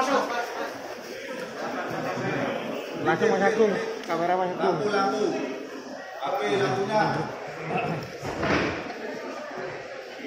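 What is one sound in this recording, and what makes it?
Several men talk over one another in a crowded, echoing room.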